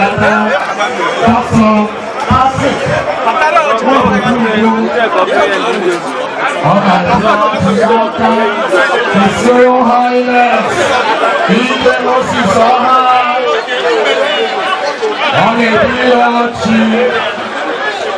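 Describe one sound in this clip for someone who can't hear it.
A crowd of men and women chatters loudly all around, close by.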